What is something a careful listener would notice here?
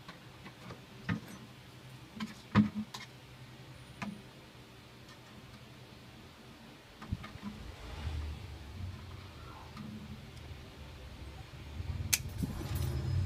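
Thin wire taps and scrapes against a plastic jar.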